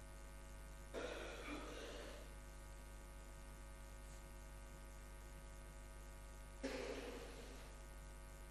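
A large congregation murmurs together in a large echoing hall.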